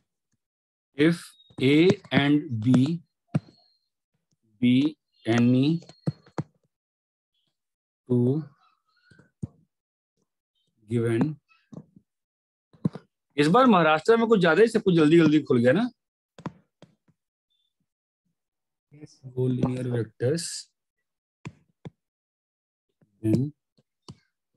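A man lectures calmly in short phrases with pauses, heard through a microphone in an online class.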